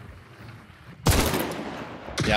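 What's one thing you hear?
A gunshot cracks loudly nearby.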